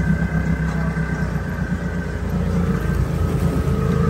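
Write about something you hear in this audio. Muddy water splashes and churns against a vehicle.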